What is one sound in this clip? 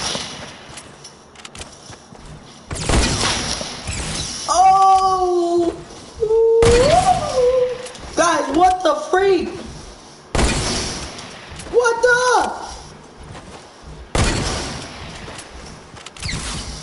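Gunshots ring out in loud bursts.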